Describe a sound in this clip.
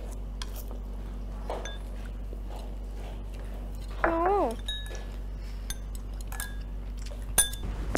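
Chopsticks click against bowls.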